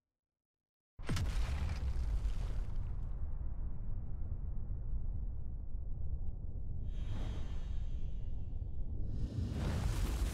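A deep, heavy rumble roars and swells.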